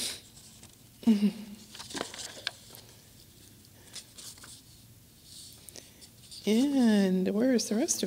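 A man sings slow, drawn-out notes into a microphone, with long pauses between them.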